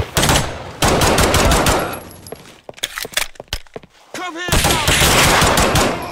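A pistol fires sharp shots in an echoing space.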